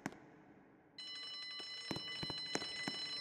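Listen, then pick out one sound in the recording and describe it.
A fire alarm panel sounds a steady high electronic tone.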